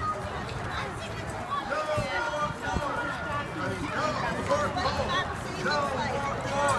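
A crowd of men and women talk and chatter outdoors as they walk.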